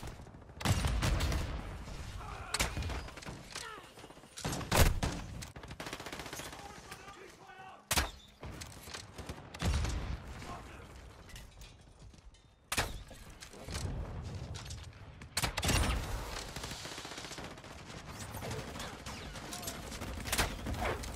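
A crossbow fires with sharp snaps, again and again.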